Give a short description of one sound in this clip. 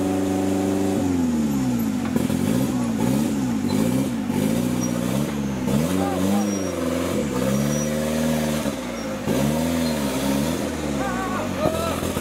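Tyres churn and slip in thick mud.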